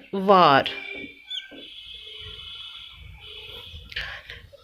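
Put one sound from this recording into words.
A marker squeaks as it writes on a whiteboard.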